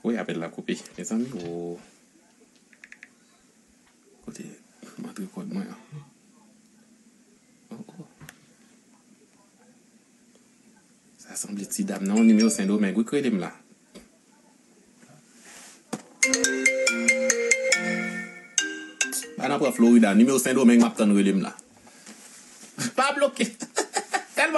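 A young man talks calmly and close to a microphone, in bursts with pauses.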